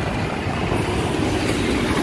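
A truck engine rumbles by.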